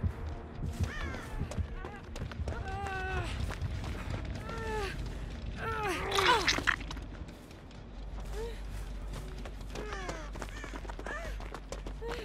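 A woman groans and cries out in pain.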